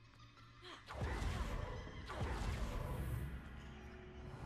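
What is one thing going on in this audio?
A magical burst whooshes loudly.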